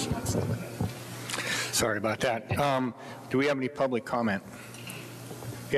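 A middle-aged man speaks calmly into a microphone in an echoing room.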